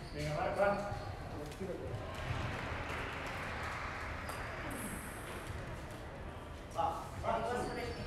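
A table tennis ball clicks back and forth across a table.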